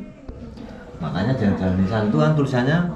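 A middle-aged man speaks calmly up close.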